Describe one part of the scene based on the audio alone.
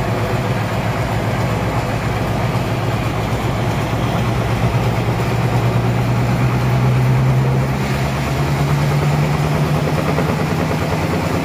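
A sawmill machine hums and rumbles loudly and steadily.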